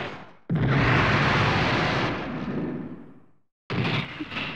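A jet engine roars loudly, then fades away.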